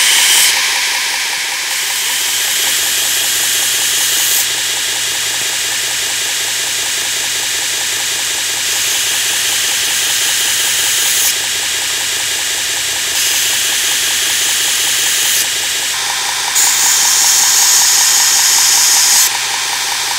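A drill bit grinds against a sanding belt with a harsh hiss.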